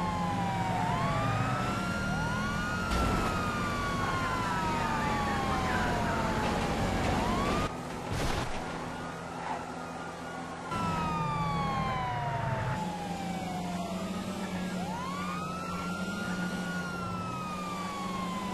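A police siren wails in rising and falling sweeps.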